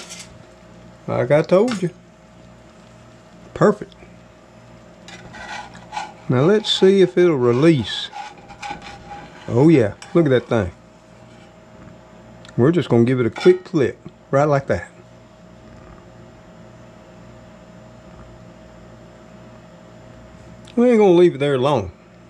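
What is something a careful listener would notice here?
An egg sizzles softly in a hot pan.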